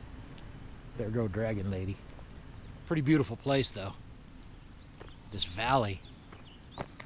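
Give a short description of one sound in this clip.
A middle-aged man speaks calmly, close to the microphone.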